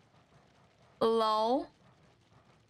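A dog howls briefly.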